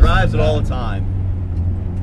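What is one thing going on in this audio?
A man speaks briefly from close by inside the car.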